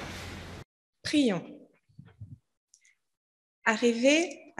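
A child speaks on stage through a microphone.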